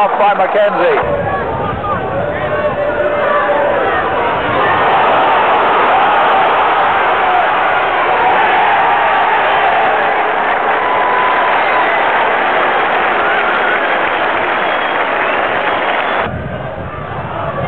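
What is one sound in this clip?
A large crowd murmurs and chatters steadily in an open stadium.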